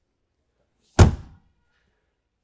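A storage hatch door slams shut with a loud bang.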